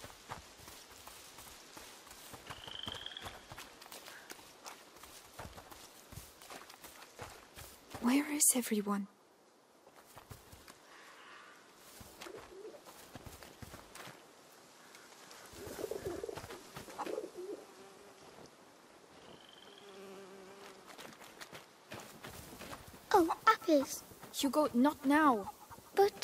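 Footsteps crunch over dry leaves and dirt.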